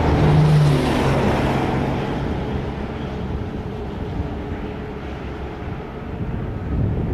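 Wind rushes over the microphone outdoors.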